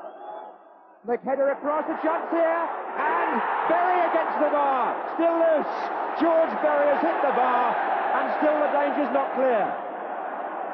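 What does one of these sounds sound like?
A stadium crowd sings and chants loudly.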